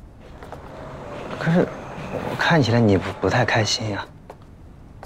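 A young man speaks gently close by.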